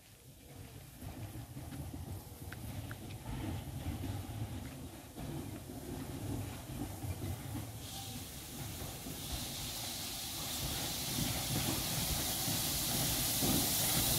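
A steam locomotive chugs with a low rhythmic puffing as it slowly draws closer.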